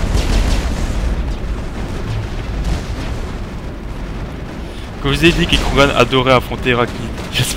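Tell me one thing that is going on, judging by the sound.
Energy weapons fire in bursts.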